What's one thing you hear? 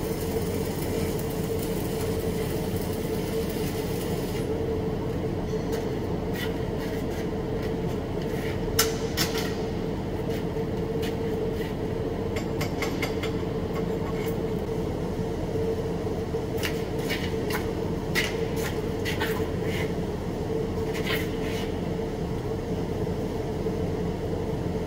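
A fume extractor hums steadily.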